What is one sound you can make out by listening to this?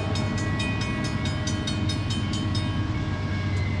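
A locomotive bell rings rapidly.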